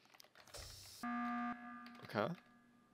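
A game's emergency alarm sounds with a short steady tone.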